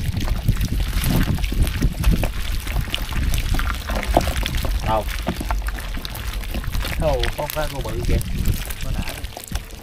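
Wet fish squelch and slither as a hand scoops through them.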